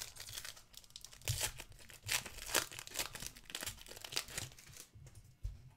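A foil card pack crinkles as it is torn open.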